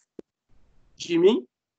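A woman says a short word over an online call.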